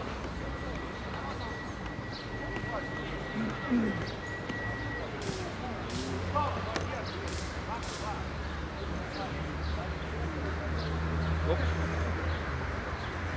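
Young men call out to each other from a distance outdoors.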